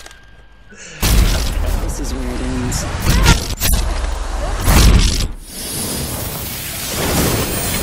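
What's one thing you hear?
A loud whooshing burst of music plays.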